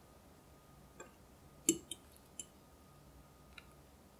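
A metal fork taps and clinks against a glass dish.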